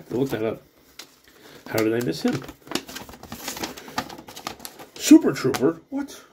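Paper crinkles and rustles as a folded leaflet is opened by hand.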